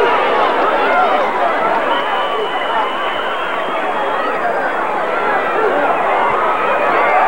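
A large crowd cheers and shouts throughout, outdoors.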